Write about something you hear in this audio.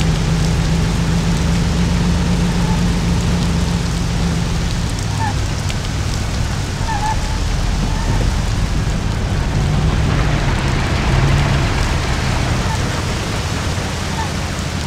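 An old car engine hums steadily and changes pitch as the car speeds up and slows down.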